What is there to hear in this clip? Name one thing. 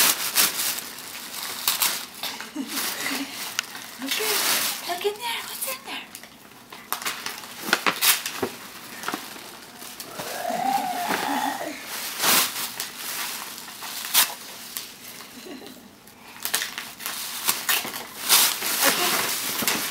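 Tissue paper rustles and crinkles close by.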